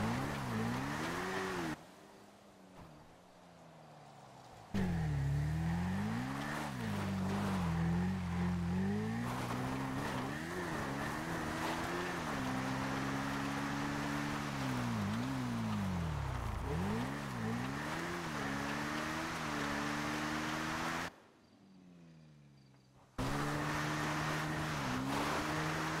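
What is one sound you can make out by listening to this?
Tyres crunch over gravel and dirt.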